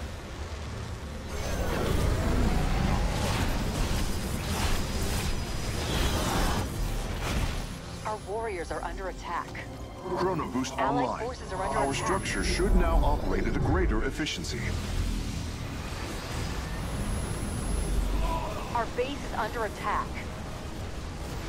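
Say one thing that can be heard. Energy weapons fire in rapid bursts during a battle.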